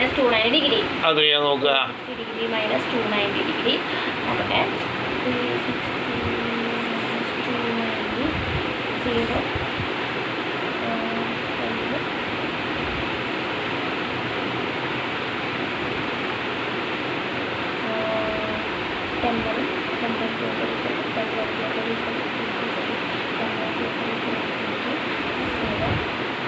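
A young woman speaks close by, reading out and explaining with animation.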